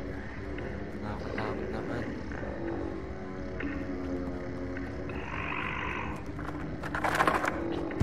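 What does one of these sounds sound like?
Small footsteps creak on wooden floorboards.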